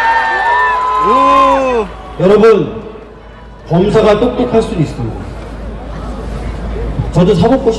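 A man speaks loudly into a microphone, amplified through loudspeakers outdoors.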